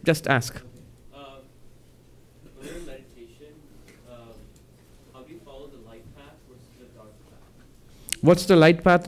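A man asks a question quietly, away from the microphone.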